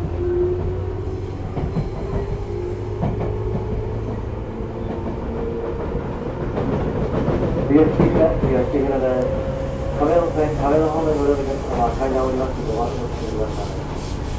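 An electric train rumbles slowly along the tracks.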